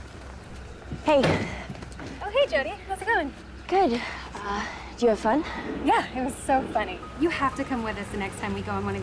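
A teenage girl talks casually up close.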